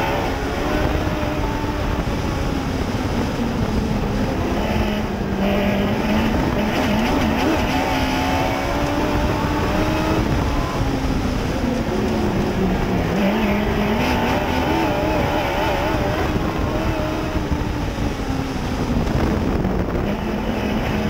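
A dirt track modified race car engine roars at full throttle from inside the cockpit, rising and falling in pitch through the corners.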